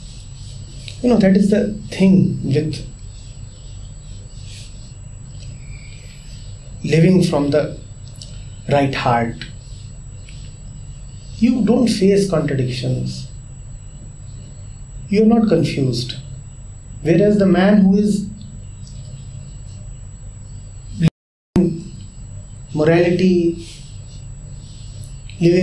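A man speaks calmly and thoughtfully into a nearby microphone, in short bursts with pauses.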